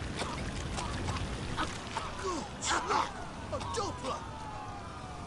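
A man groans loudly.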